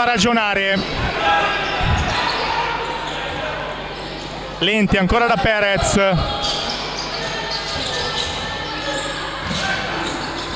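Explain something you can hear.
Crowd murmurs in a large echoing hall.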